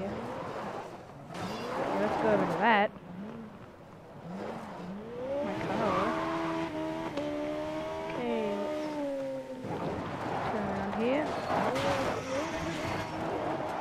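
Tyres skid and scatter gravel on dirt.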